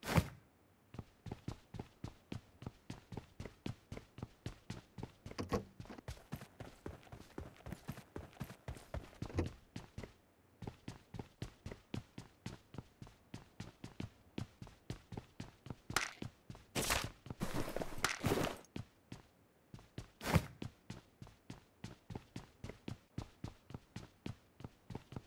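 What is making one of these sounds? Quick footsteps run steadily over hard floors.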